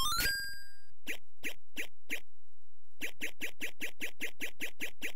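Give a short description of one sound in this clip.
Retro arcade game footsteps tick in a quick, steady rhythm.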